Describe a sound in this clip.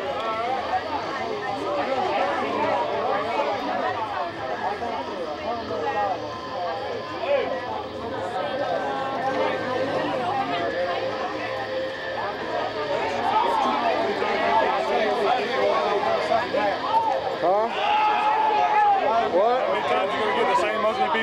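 Several men talk together close by, outdoors.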